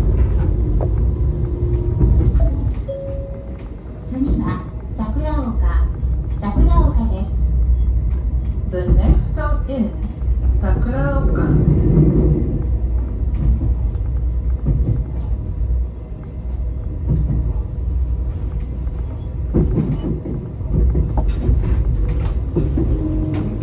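A train engine rumbles steadily.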